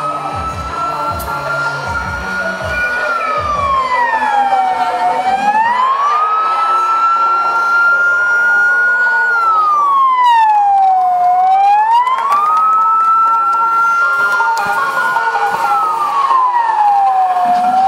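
A siren wails steadily, slowly rising and falling in pitch.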